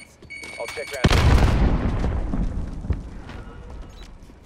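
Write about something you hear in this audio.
A grenade explodes with a loud boom that rumbles away.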